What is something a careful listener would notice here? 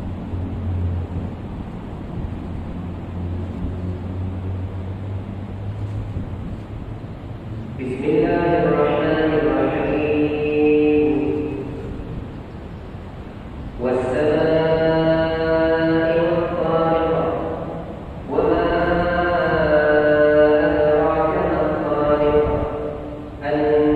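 Ceiling fans whir steadily.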